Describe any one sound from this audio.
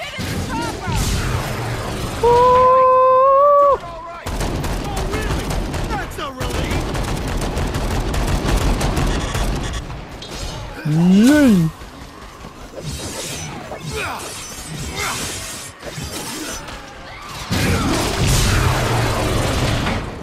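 A spinning bladed weapon whirs and grinds.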